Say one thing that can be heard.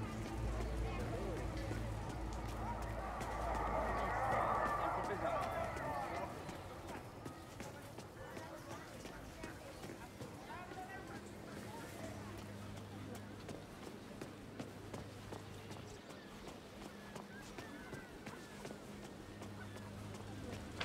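Quick footsteps run on stone pavement.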